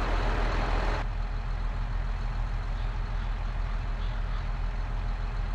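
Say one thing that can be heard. A tractor engine hums, muffled from inside the cab.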